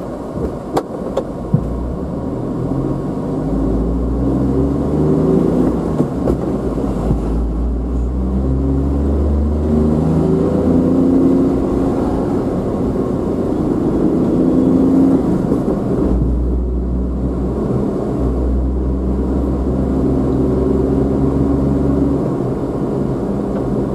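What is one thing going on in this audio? Tyres roll on a paved road.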